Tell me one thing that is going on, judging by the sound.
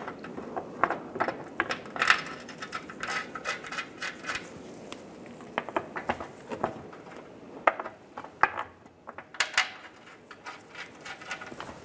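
Metal bolts click and clink against each other as they are handled.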